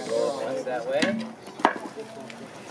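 A heavy wooden beam knocks onto wooden blocks.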